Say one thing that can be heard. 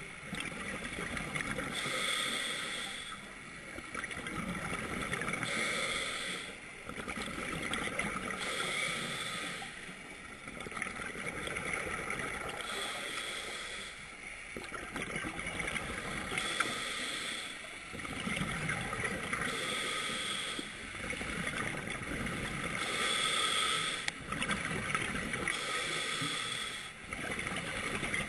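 A scuba diver breathes through a regulator in slow, regular cycles, with bubbles rushing out close by.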